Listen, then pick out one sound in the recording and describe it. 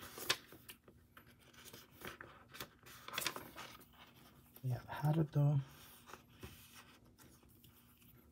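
Stiff binder pages flap as they are turned.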